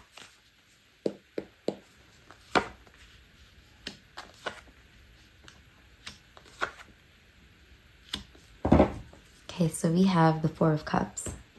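Cards are laid down and slide softly onto a mat.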